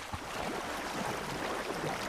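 Water splashes as someone wades.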